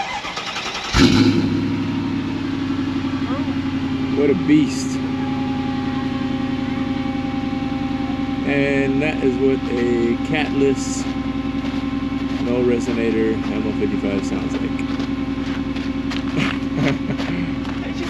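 A car engine starts suddenly and idles steadily.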